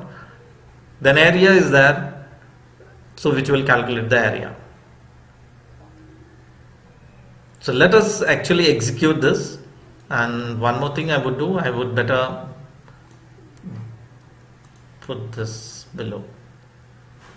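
A man speaks calmly, close to a microphone, with pauses.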